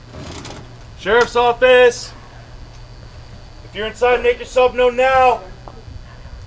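A man shouts loudly and commandingly at close range.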